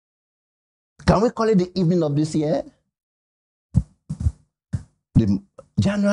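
A man speaks with animation into a microphone, with pauses.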